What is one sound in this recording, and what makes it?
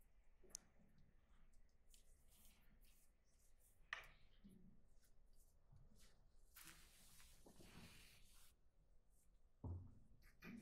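Keys click faintly on a laptop keyboard.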